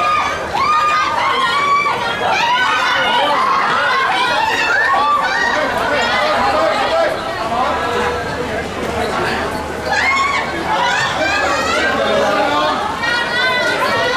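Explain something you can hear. A large crowd chatters loudly in an echoing hall.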